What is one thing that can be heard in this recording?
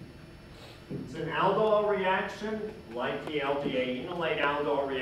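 A man speaks clearly in a slightly echoing room.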